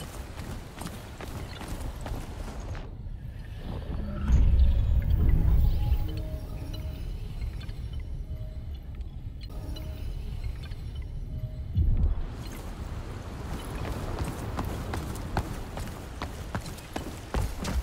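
Quick footsteps run across stone.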